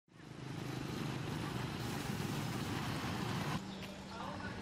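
A motorbike engine hums as it rides past on the street.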